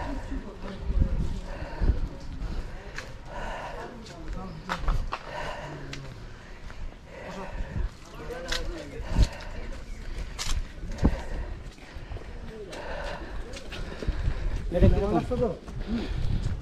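Footsteps thud on a path.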